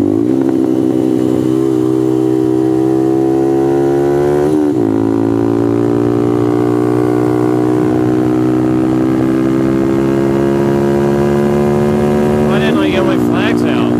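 A motorcycle engine roars loudly at high revs, briefly dipping and rising again as gears change.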